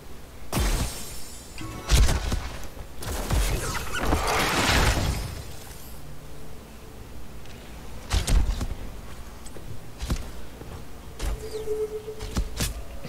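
Magical blasts and impacts burst and crackle in a video game fight.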